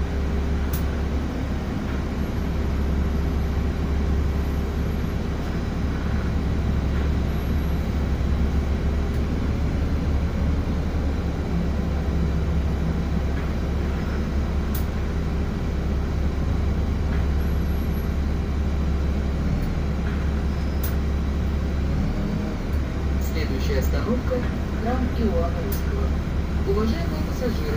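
Traffic rumbles past outside the window.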